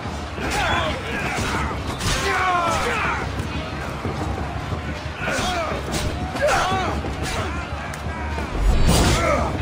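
Men grunt and shout in combat.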